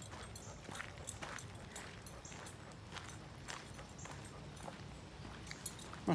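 A dog's paws patter on a gravel path.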